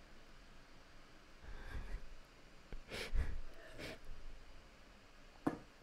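Glass jars clink together.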